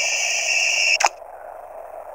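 A short electronic click sounds from a game.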